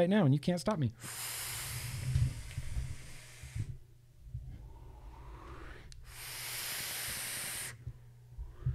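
A loud hiss of vapour blasts out in bursts.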